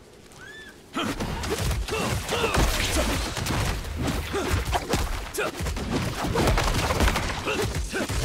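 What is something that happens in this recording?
Magic blasts crackle and explode in a fierce fight.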